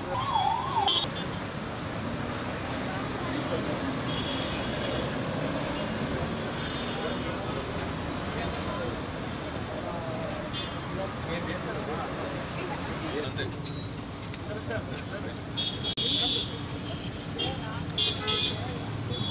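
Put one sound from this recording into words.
A crowd of men murmurs and chatters outdoors nearby.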